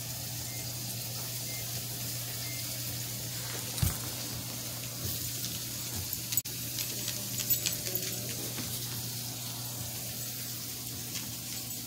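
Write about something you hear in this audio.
Small dog paws patter and scrabble on a wooden floor.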